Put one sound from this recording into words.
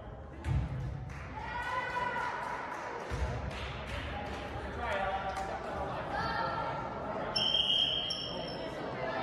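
Players call out and shout to each other in an echoing gym.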